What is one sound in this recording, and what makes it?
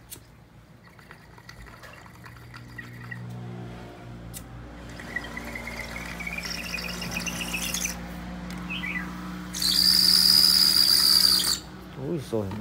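A bamboo water pipe gurgles and bubbles.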